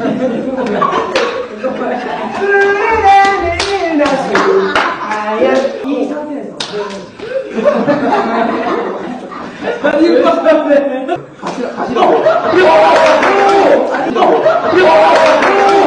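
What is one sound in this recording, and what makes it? Young men talk and laugh loudly nearby.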